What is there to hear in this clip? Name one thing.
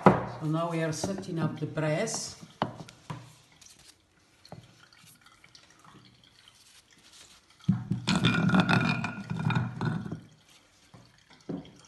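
Wooden blocks knock against each other and the bottom of a wooden press.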